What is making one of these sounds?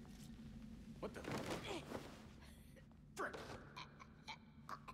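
Heavy blows land with dull thuds.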